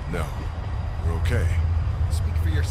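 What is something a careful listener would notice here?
A man answers calmly up close.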